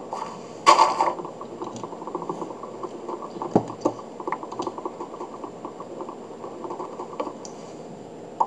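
Wooden blocks knock and crunch in a quick, steady series of chops.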